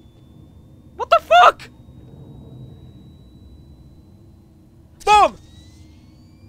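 A young man gives short loud exclamations close to a microphone.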